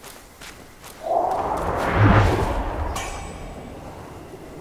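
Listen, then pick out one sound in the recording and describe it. A loud whoosh swells and fades.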